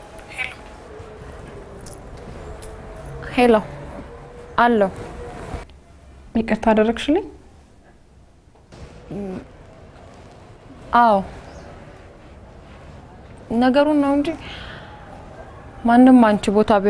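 A young woman speaks on a phone in short, tense bursts.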